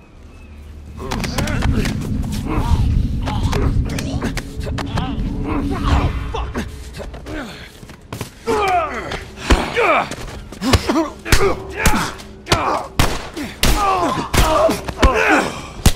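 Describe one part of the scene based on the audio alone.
A man grunts and struggles as he grapples with another man.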